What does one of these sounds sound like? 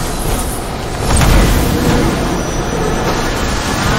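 A crackling bolt of lightning strikes with a roar.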